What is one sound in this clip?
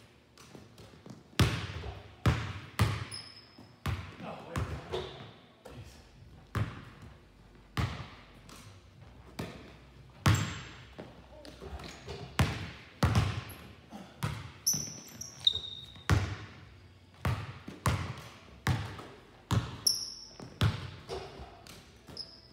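Basketballs bounce on a hard floor, echoing in a large hall.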